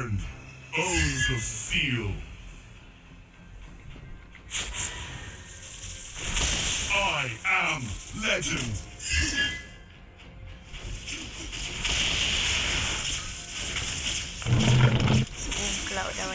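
Combat effects from a mobile battle game whoosh and burst.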